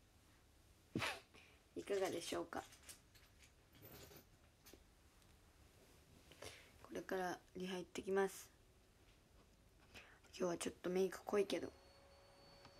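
A young woman talks casually and close to a microphone, in short bursts.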